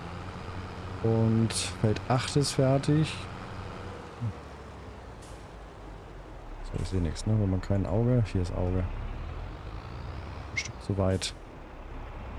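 A man talks calmly into a close microphone.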